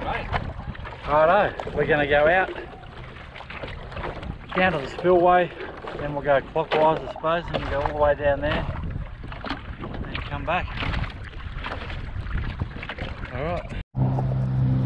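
Water laps gently against boards.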